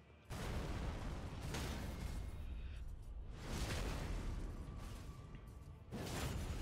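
Metal blades clash and scrape in a sword fight.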